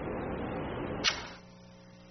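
A click sounds as a recorder is switched off.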